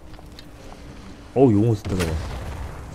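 A burst of flame explodes with a sudden roar.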